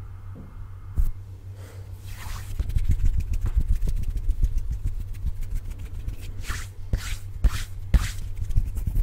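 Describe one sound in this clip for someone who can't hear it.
Fingers tap sharply on a microphone close up.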